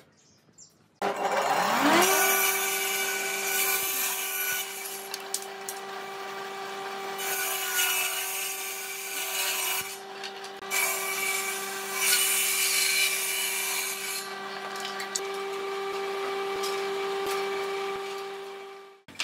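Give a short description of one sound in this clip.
A table saw starts up and runs with a steady whine.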